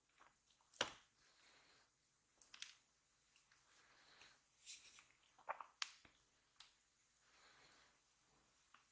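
Rice and food are scooped with soft crisp rustles.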